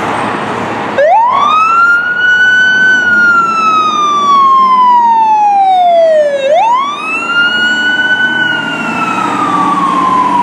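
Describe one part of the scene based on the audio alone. A fire truck's siren wails loudly, rising and falling.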